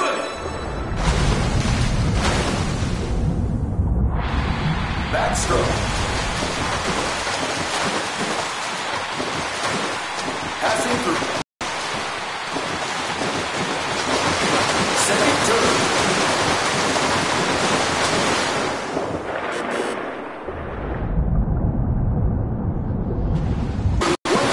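Water rumbles, muffled, as a swimmer moves underwater.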